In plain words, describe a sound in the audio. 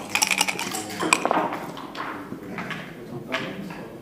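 Dice rattle and roll across a wooden board.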